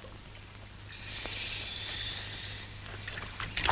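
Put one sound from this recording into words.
Water splashes as a diver climbs out.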